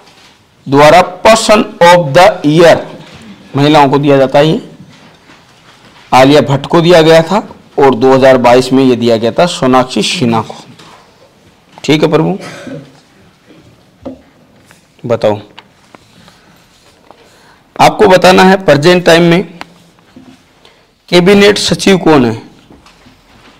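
A man answers calmly, close to a microphone.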